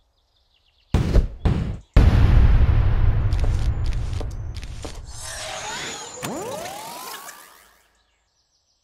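A loud game sound effect swells and fades as a round begins.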